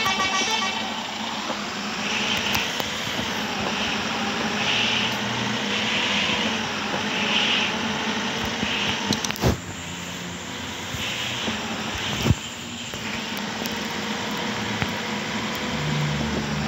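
A bus engine hums steadily while driving along a road.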